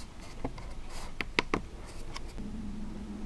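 Cardboard rustles and taps as a box is opened.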